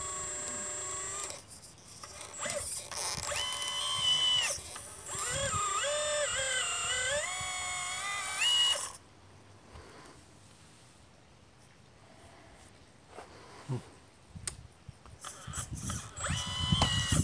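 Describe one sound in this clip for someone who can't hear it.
Small electric motors whine and change pitch as a toy excavator arm moves.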